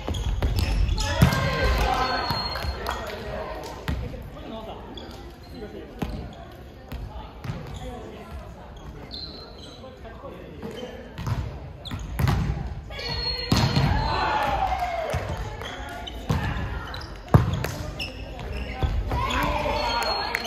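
Young players shout and call out to each other.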